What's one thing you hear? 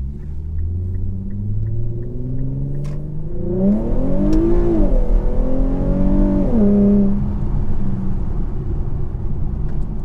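A car engine revs up strongly, dropping in pitch with each gear change.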